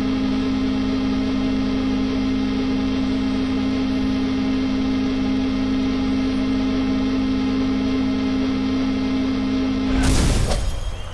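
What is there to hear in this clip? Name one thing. A sustained droning chord from a concert recording plays through a loudspeaker.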